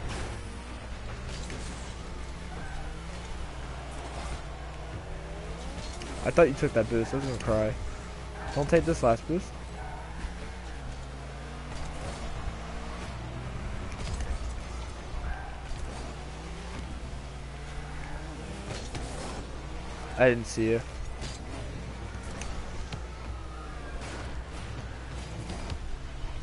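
A game car's engine hums and revs.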